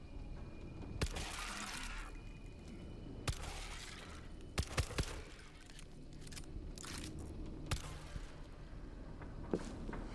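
Gunshots crack sharply, one at a time.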